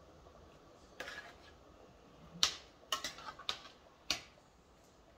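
A metal spoon clinks against a cooking pot.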